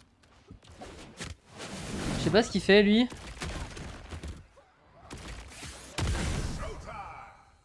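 A video game explosion bursts.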